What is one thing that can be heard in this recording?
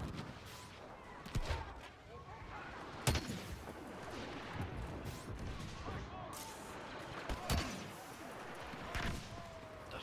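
Laser blasters fire in short bursts.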